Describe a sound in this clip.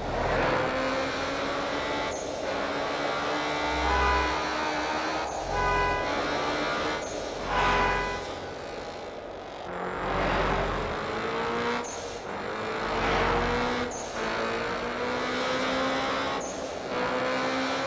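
A racing car engine revs high and climbs in pitch, dropping at each gear change.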